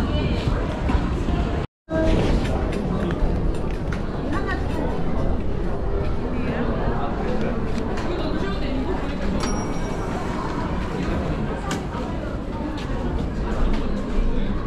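A crowd murmurs and chatters all around.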